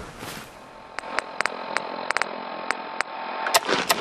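Short electronic clicks tick as a menu is scrolled.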